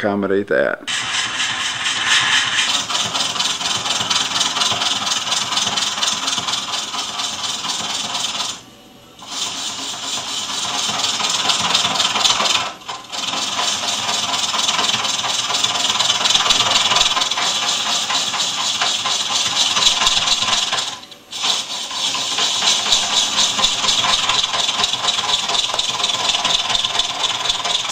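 A lathe tool scrapes and hisses loudly against spinning wood.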